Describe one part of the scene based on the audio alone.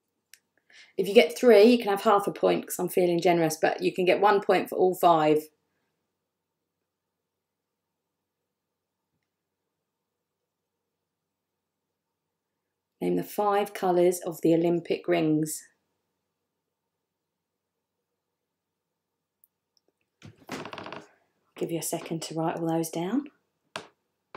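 A woman speaks calmly into a microphone close by, pausing between phrases.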